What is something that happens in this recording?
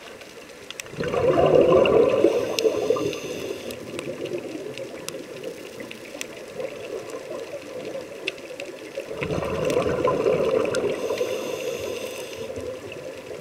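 Exhaled bubbles rush and gurgle loudly underwater.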